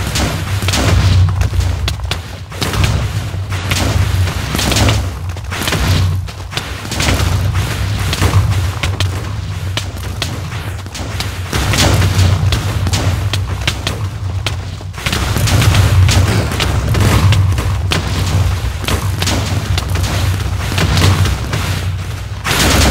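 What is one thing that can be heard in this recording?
Explosions boom again and again.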